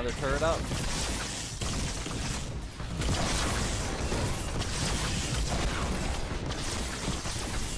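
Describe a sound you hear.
A man talks into a headset microphone, close and casual.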